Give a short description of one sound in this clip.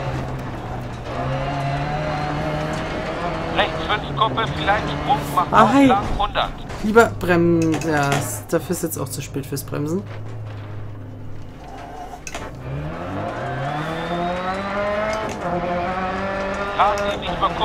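A rally car engine roars and revs up and down.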